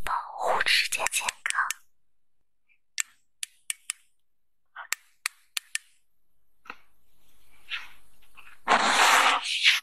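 A plastic pen tip taps and scrapes against a plastic case.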